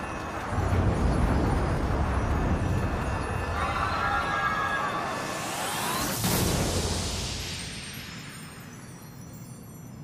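A booming magical blast bursts and rumbles, then fades into a shimmering hiss.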